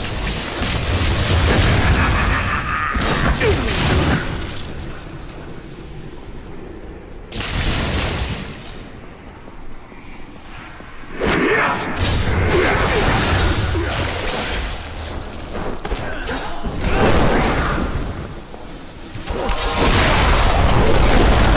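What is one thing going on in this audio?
Spells crackle and blast in a fight in a game.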